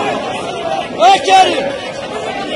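A man shouts loudly over the crowd.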